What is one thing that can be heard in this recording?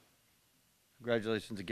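An older man speaks calmly into a microphone in a large hall.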